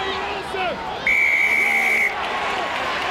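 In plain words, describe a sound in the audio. A referee blows a long blast on a whistle.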